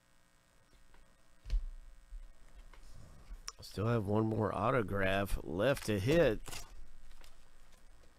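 A foil wrapper crinkles and tears as a pack is opened.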